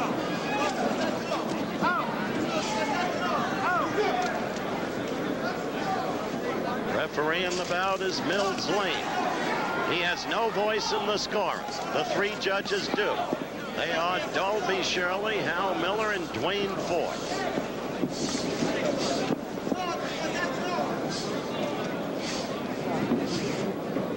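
A large crowd murmurs and cheers throughout.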